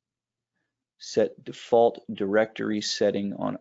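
A man speaks calmly into a microphone, heard as if over an online call.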